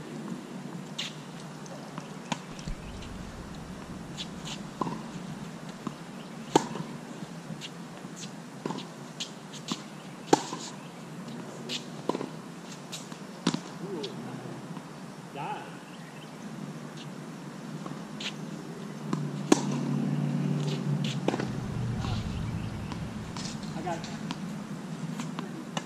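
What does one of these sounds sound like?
A tennis racket strikes a ball with sharp pops, over and over, outdoors.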